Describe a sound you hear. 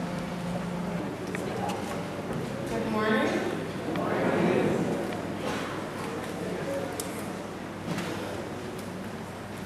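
A woman speaks into a microphone over a loudspeaker in an echoing hall.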